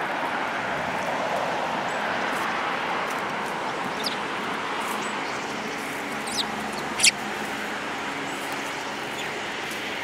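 A small bird pecks at seeds in a hand with faint ticks.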